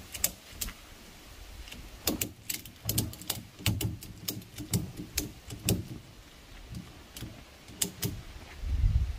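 Metal clinks and knocks sharply.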